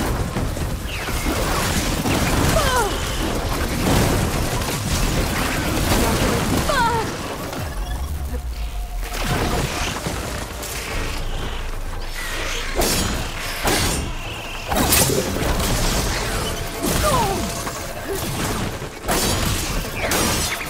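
A robotic creature growls and screeches.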